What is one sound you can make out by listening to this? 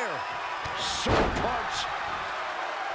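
A body slams onto the mat with a loud thud.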